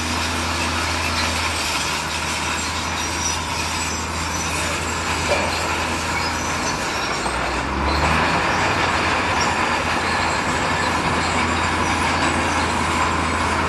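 Rocks and dirt rumble and clatter as they pour from a dump truck.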